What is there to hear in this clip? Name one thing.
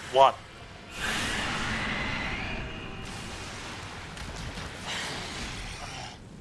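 A huge beast roars loudly.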